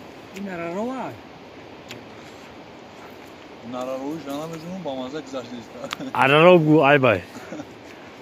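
A man speaks casually nearby outdoors.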